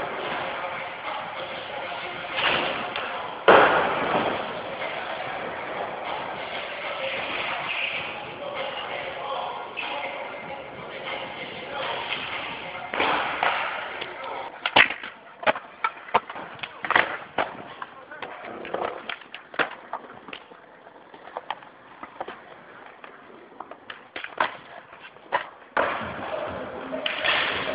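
Skateboard wheels roll and clack on hard ground.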